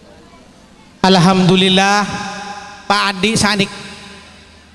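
A man calls out loudly into a microphone, booming through loudspeakers with echo.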